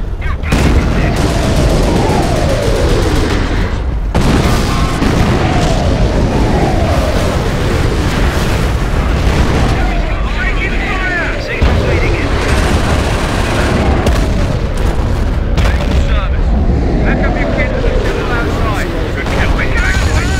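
Shells whistle down, falling in pitch.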